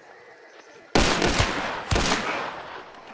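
A gun fires loud shots that echo outdoors.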